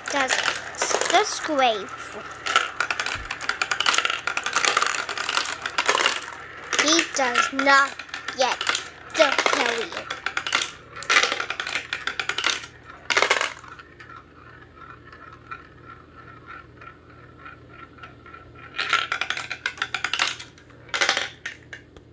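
Marbles roll and clatter around a plastic funnel.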